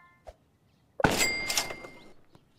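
A bright sparkling chime rings out.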